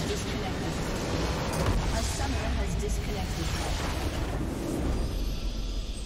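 A huge structure explodes with a deep, roaring rumble.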